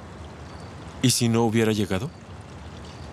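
A young man speaks nearby in a low, calm voice.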